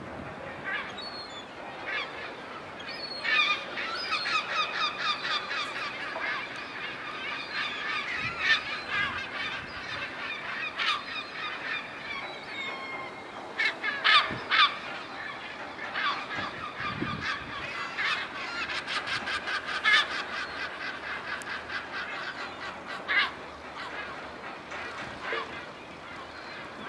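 Seagulls call and squawk overhead, near and far.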